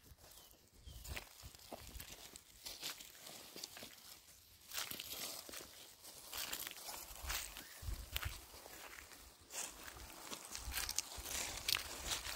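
Footsteps crunch on dry stony ground.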